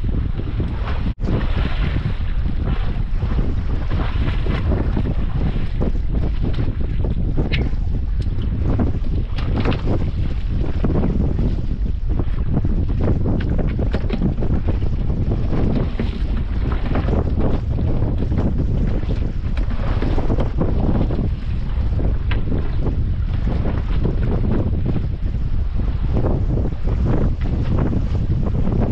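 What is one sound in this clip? Waves lap against the side of a small boat.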